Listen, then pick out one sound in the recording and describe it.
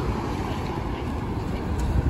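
A bus drives past on a street.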